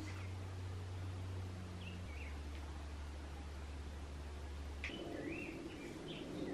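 A razor scrapes softly across skin.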